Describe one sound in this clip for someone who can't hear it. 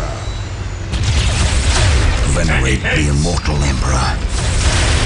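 Rapid gunfire rattles.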